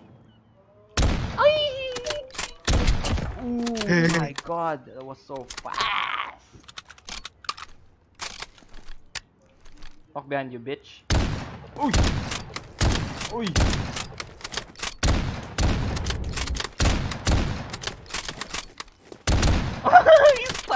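A rifle fires with loud bangs, again and again.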